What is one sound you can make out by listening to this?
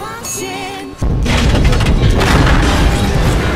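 A train derails with a loud, roaring crash.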